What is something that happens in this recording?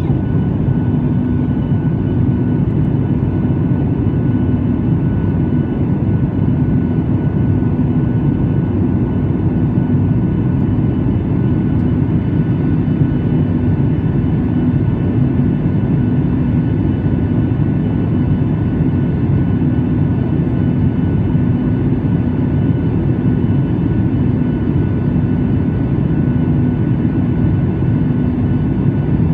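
Jet engines roar steadily in flight.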